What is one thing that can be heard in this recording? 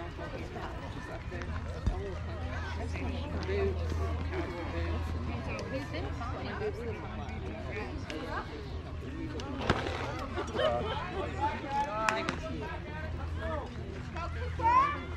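Players and spectators call out and chatter outdoors.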